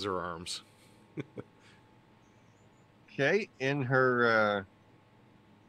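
A man speaks with animation into a microphone, heard through an online call.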